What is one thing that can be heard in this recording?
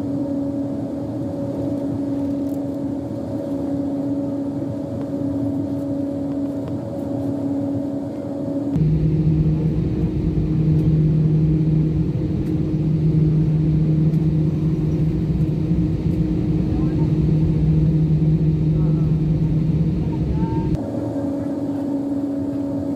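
Jet engines hum steadily inside an aircraft cabin as it taxis.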